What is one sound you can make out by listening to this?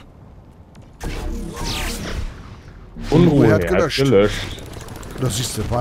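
A laser gun fires in rapid bursts.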